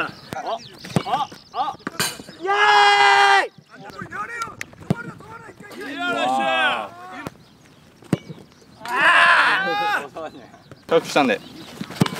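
A ball is kicked hard with a thump.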